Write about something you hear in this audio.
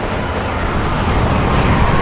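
Gunfire bursts rapidly.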